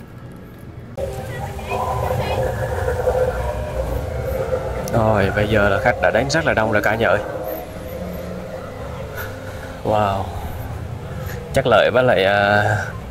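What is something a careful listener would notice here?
Adults chat nearby outdoors.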